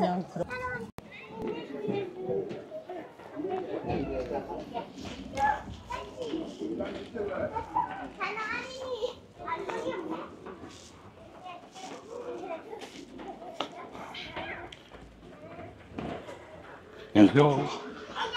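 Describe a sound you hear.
Young children chatter softly as they walk.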